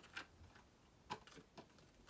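Playing cards slap softly onto a table.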